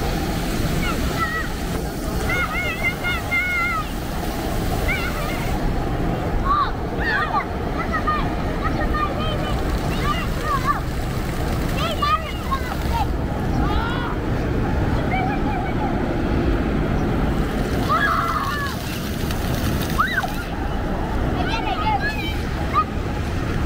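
A young child squeals and calls out playfully close by.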